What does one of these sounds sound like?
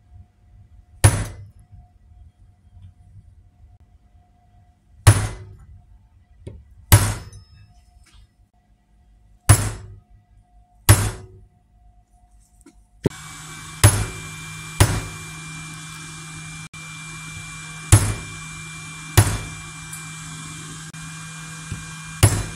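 A hammer strikes a metal punch with sharp, ringing blows at uneven intervals.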